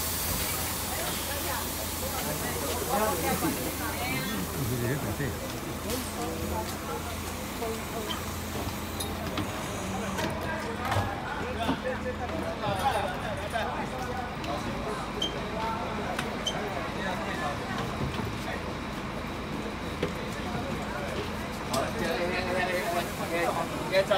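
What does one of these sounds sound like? Several adults chatter nearby outdoors.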